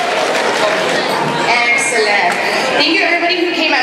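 A second woman speaks into a microphone, heard through loudspeakers.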